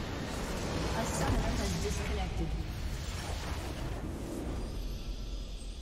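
A large structure explodes with a deep boom in a video game.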